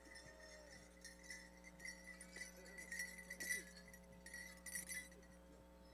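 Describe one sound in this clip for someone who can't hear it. Bells on dancers' outfits jingle in rhythm with their steps.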